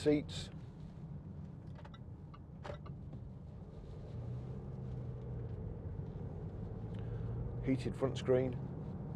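A car engine hums steadily from inside the car, growing a little louder as the car speeds up.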